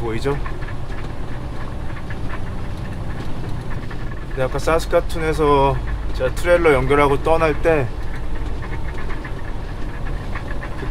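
A vehicle drives steadily along a gravel road, tyres crunching.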